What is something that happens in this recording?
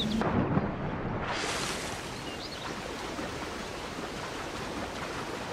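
Water laps and sloshes steadily.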